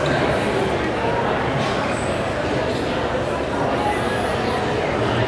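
A crowd of people chatter around the listener in an echoing indoor space.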